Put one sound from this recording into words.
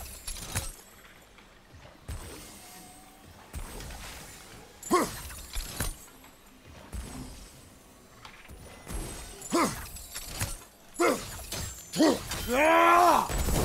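Magical blasts burst with sharp cracks.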